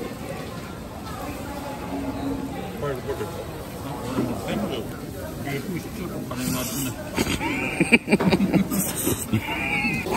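A man chews and slurps noodles close by.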